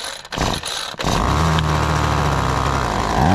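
A small two-stroke engine sputters to life and idles steadily.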